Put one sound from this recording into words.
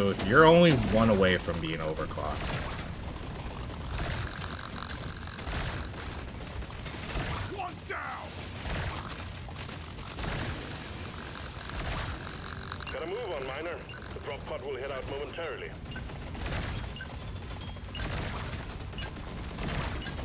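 Laser weapons fire and crackle with rapid electronic zaps.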